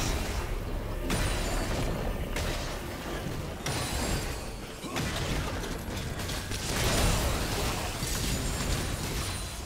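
Game combat effects clash and crackle as characters fight.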